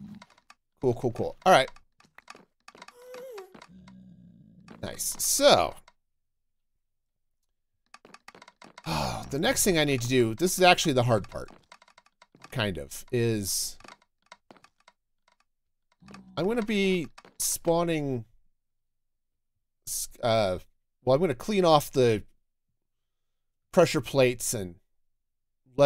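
A middle-aged man talks with animation into a close microphone, in bursts with pauses.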